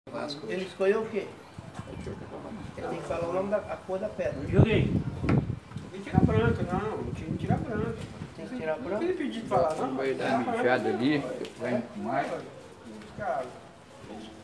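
Several men talk with animation close by, their voices overlapping.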